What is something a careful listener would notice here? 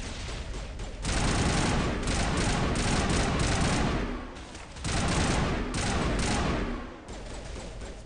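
Rapid gunfire crackles in short bursts.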